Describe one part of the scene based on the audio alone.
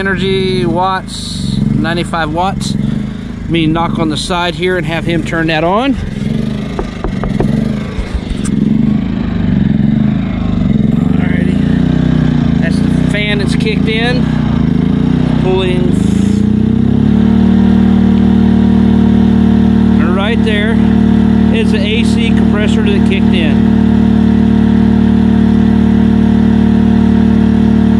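A small generator engine runs nearby with a pulsing hum, then settles into a steadier, heavier drone.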